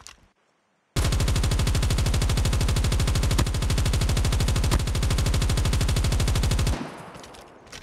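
A machine gun fires in a rapid, steady burst.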